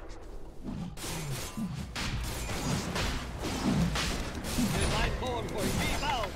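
Game spells and weapons clash and burst during a fight.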